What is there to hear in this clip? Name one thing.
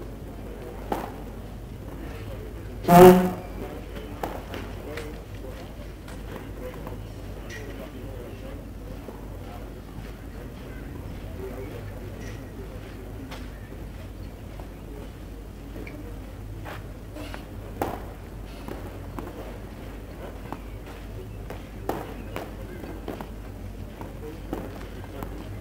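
A tennis ball thuds sharply on a court a few times.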